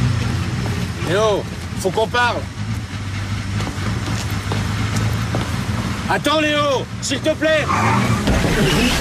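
A middle-aged man speaks loudly and with animation, close by.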